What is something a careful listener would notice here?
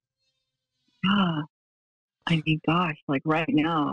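A woman speaks calmly and closely into a microphone.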